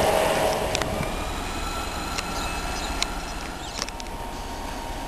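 A diesel train rumbles slowly along the tracks.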